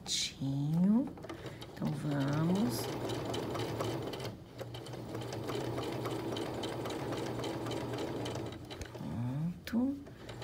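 A sewing machine speeds up, stitches steadily with a rapid hum and clatter, then slows to a stop.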